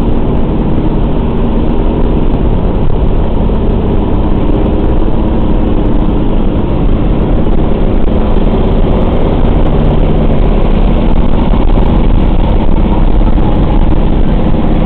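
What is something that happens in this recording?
The four radial piston engines of a bomber drone, heard from inside the fuselage.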